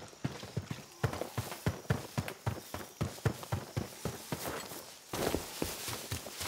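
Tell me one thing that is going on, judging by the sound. Footsteps crunch quickly through undergrowth.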